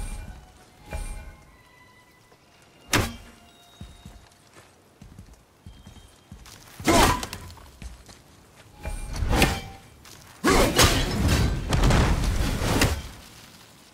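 An axe whooshes through the air and thuds into wood.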